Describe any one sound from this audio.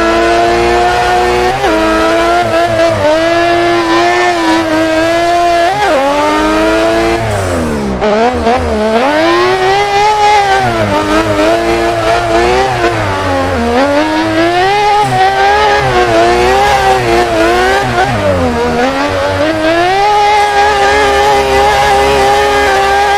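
Tyres screech on asphalt as a car slides sideways.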